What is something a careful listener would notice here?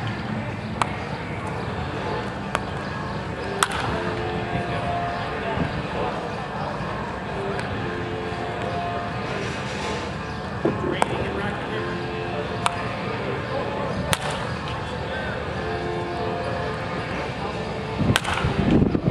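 A baseball bat cracks sharply against balls, again and again.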